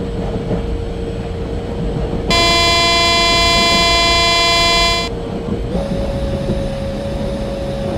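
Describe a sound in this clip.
An electric locomotive rolls along the track.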